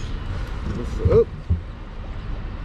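A man exclaims loudly close by.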